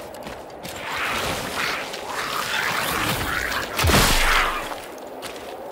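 A fight breaks out with loud scuffling and blows.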